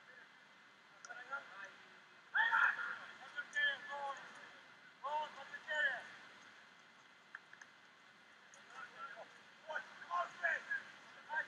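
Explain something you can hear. Young players shout calls to each other outdoors in the open.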